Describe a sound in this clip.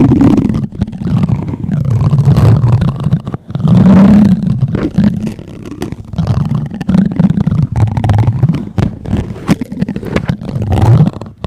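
A plastic spoon rubs and scrapes against a microphone's foam cover.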